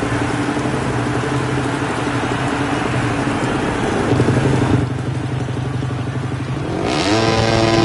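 A motorcycle engine idles and revs in short bursts.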